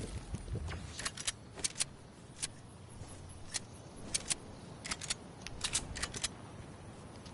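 Footsteps tap on a hard surface.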